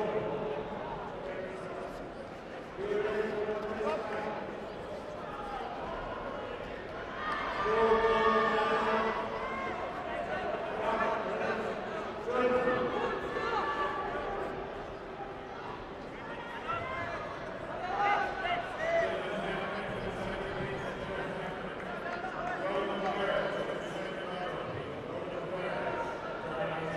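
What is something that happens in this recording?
A large crowd chatters throughout a big echoing hall.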